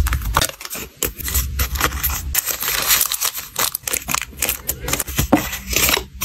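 Paper crinkles as hands fold a card.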